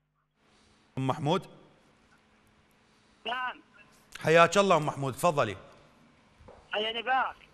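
A man speaks clearly into a microphone in a calm, presenting manner.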